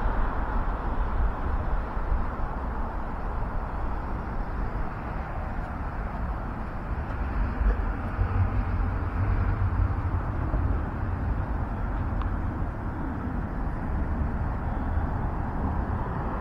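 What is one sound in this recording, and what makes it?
Traffic rumbles steadily along a nearby street outdoors.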